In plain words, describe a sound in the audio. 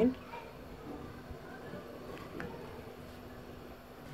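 A spoon scrapes and stirs in a pot.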